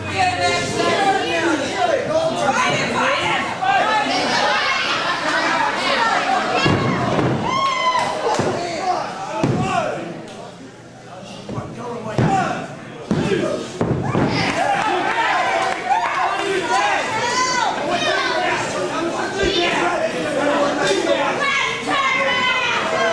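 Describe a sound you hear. A crowd cheers and shouts in a hall.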